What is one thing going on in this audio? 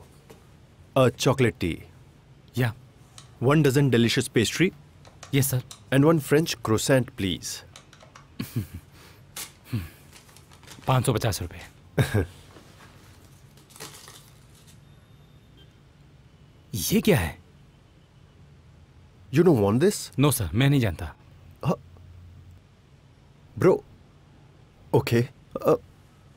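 A man speaks with animation and laughs, close by.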